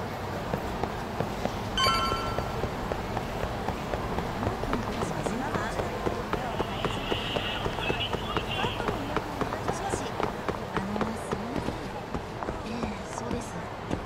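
A crowd murmurs in a busy street.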